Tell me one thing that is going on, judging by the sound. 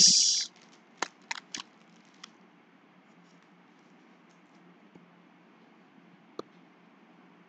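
Cards click and rustle softly as hands shuffle them.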